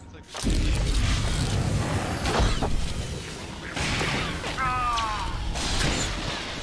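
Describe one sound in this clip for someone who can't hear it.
Electric lightning crackles and buzzes loudly.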